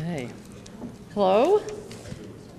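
Another woman begins speaking into a microphone.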